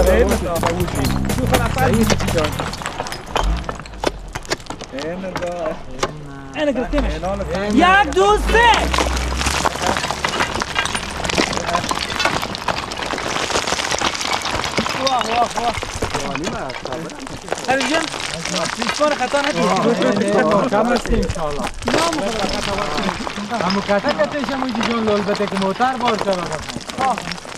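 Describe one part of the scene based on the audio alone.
Several men talk and call out outdoors.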